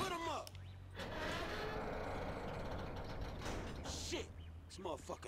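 A heavy sliding door rumbles open along its track.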